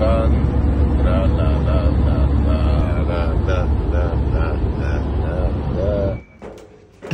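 A young man's voice comes from close by inside the vehicle.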